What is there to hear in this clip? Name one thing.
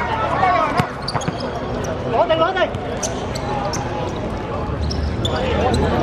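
Sneakers squeak on the hard court.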